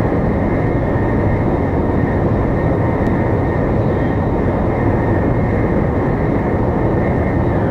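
A high-speed train rumbles steadily along the track at speed.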